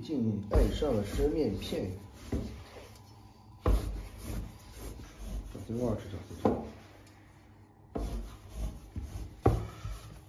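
A heavy knife chops through dough onto a wooden board with dull thuds.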